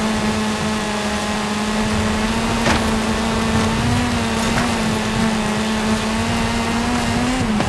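Tyres crunch and skid over gravel.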